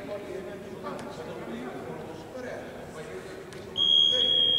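A basketball bounces on a hardwood court in a large empty echoing hall.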